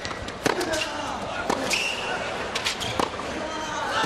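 A tennis ball is struck sharply back and forth.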